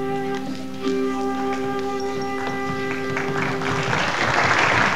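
A flute plays a melody up close.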